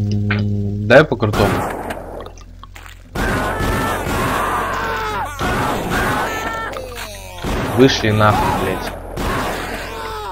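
A shotgun fires in loud, echoing blasts.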